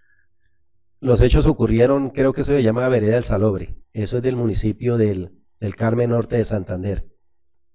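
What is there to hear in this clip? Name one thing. A middle-aged man speaks calmly into a microphone, close by, with short pauses.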